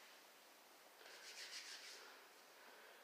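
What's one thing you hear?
A towel rubs against a man's face.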